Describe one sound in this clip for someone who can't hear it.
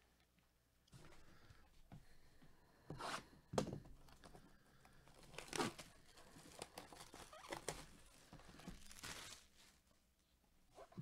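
Plastic wrap crinkles and rustles as it is torn off a box.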